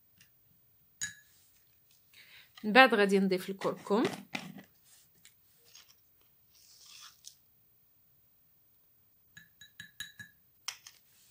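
A plastic spoon clinks and scrapes against a glass bowl.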